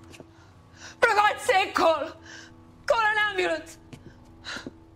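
A young man shouts urgently.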